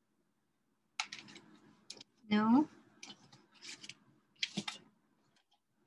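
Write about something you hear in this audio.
Paper rustles as a sheet is lifted and turned.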